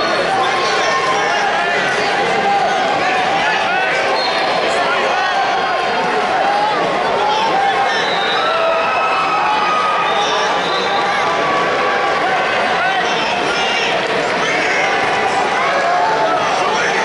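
A large crowd chatters and calls out in a big echoing hall.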